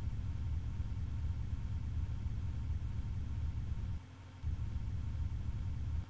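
A low engine rumbles steadily, cutting out briefly.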